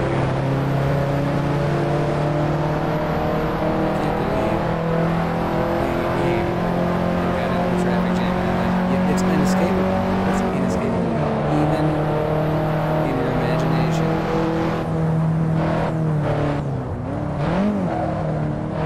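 A car engine hums steadily and shifts in pitch as the car speeds along a winding road.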